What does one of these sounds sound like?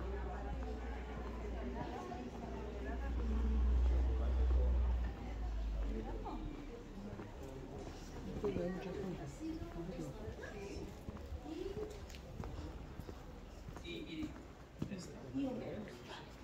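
Footsteps tap on cobblestones.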